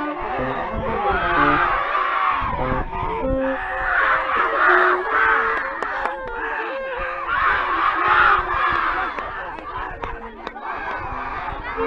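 A crowd of children shouts and cheers excitedly close by, outdoors.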